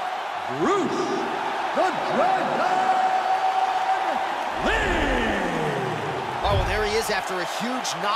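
A crowd cheers and whistles in a large arena.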